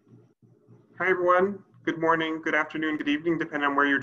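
A man speaks clearly and calmly over an online call.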